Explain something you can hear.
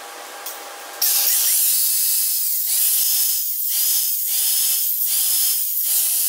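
An angle grinder whines loudly as it grinds metal.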